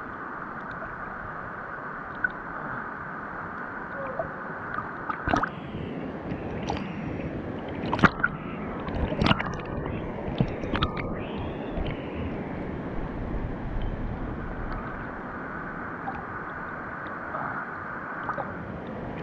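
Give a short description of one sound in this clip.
A steady rushing of water echoes all around.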